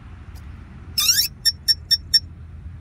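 A small plastic connector clicks into place.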